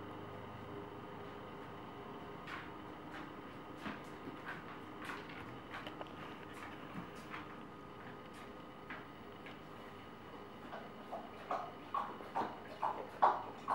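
A baby babbles and coos up close.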